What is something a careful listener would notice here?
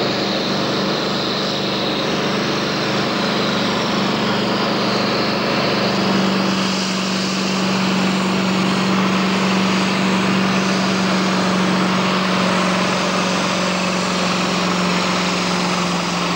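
A tractor engine roars loudly and steadily.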